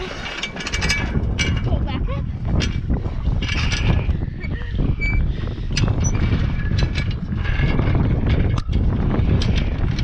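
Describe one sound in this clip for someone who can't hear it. Metal parts clank and click as hands work a crank.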